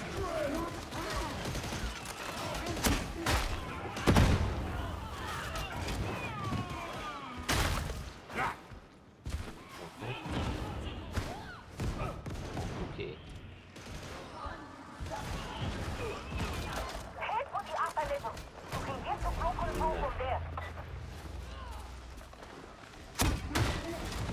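Guns fire in sharp bursts.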